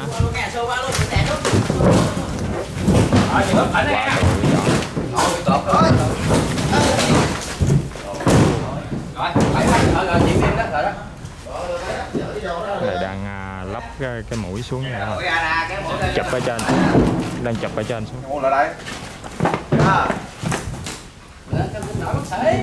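A heavy boat hull scrapes and thuds as it is pushed over a dirt floor.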